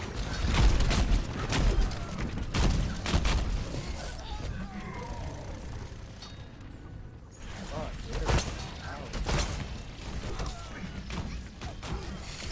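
Gunfire and explosions boom in rapid bursts.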